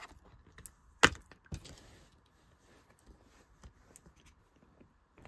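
A plastic disc case clicks and knocks as it is handled.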